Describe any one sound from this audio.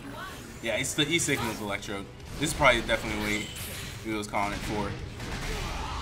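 Video game fighting sound effects thud and whoosh.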